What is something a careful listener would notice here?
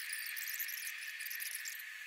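Hot glass on a blowpipe rolls and scrapes softly across a steel table.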